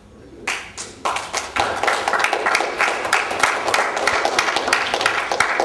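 A group of young men clap and cheer.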